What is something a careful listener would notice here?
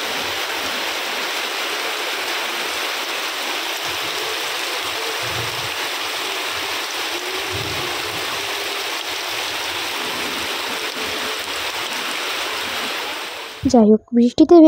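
Water rushes and splashes steadily around bare feet.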